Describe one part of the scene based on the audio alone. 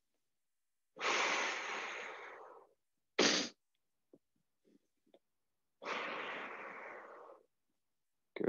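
A young man breathes out slowly and audibly.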